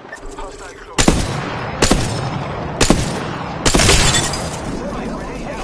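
A rifle fires loud, booming shots several times.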